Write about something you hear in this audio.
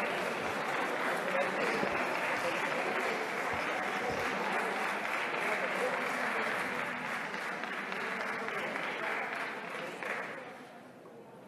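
A crowd of people murmurs in a large echoing hall.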